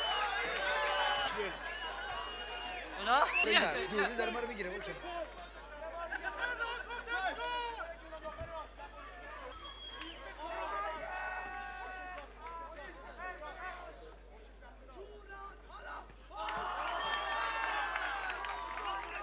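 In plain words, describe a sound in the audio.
A crowd shouts and cheers.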